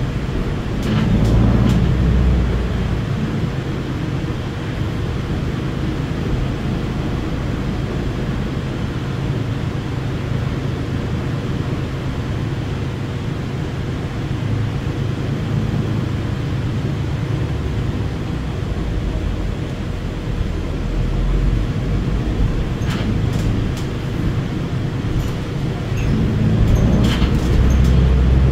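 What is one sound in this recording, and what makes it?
An articulated diesel-electric hybrid bus drives along, its low drone heard from inside the cabin.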